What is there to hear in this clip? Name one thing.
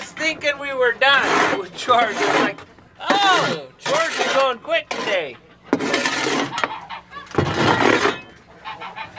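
A shovel scrapes across a hard floor.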